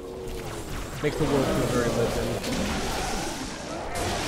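A sword slashes with a sharp swoosh.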